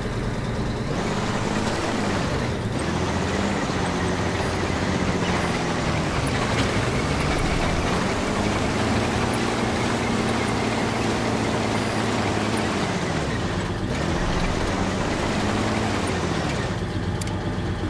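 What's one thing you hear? Tank tracks clank and rattle over the ground.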